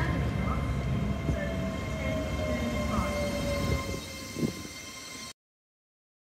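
A passenger train rumbles past close by with a loud rushing roar.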